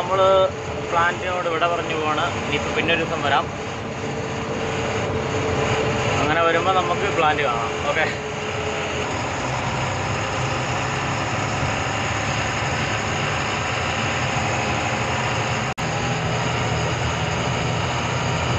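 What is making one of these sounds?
Heavy rain patters steadily on a vehicle.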